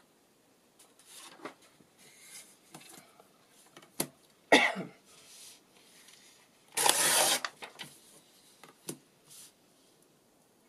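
Paper rustles and slides as sheets are handled.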